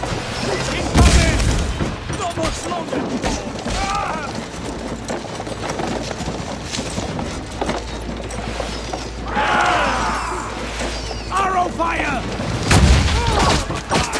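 A battering ram slams into a wooden gate with a loud, booming thud.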